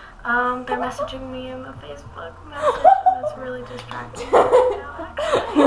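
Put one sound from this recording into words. A young woman speaks through an online call.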